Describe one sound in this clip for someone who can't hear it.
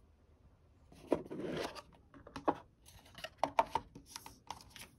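A cardboard box rustles and taps as it is handled.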